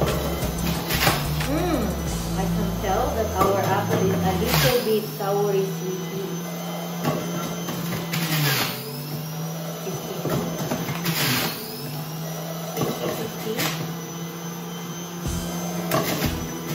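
Plastic knocks as a pusher drops into a juicer chute.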